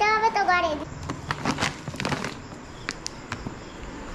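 A plastic bag crinkles and rustles in a hand.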